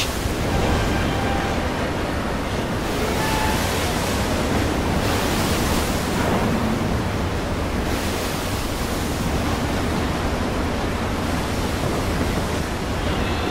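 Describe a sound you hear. Rough water churns and splashes below.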